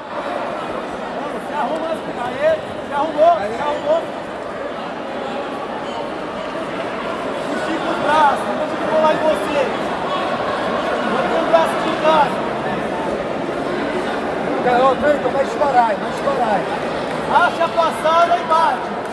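Men in the crowd shout encouragement loudly.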